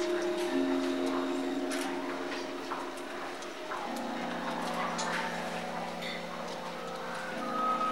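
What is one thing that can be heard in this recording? A man plays a sustained, droning melody on a bowed string instrument in a large, echoing room.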